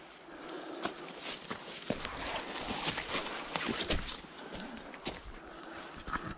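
Dry grass and twigs rustle and crackle as a hand handles them.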